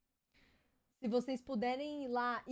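A young woman speaks into a microphone in a drawn-out, sing-song voice.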